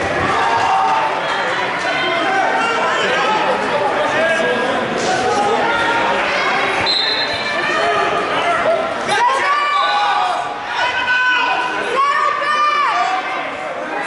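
A crowd chatters and shouts in a large echoing gym.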